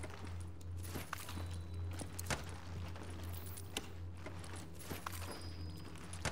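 A wooden cabinet door clicks open.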